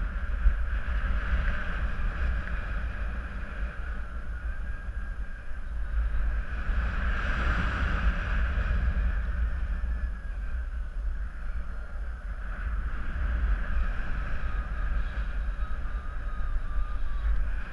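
Wind rushes loudly past, buffeting steadily.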